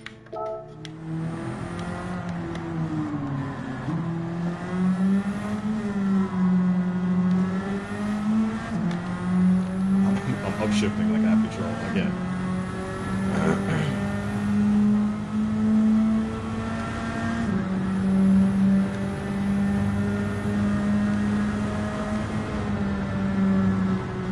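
A racing car engine roars, revving up and dropping as the gears shift.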